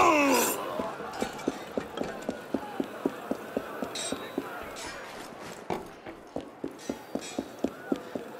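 Footsteps run quickly across stone.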